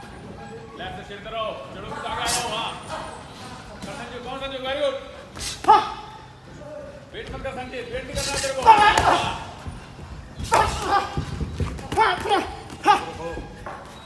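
A man calls out loudly to boxers.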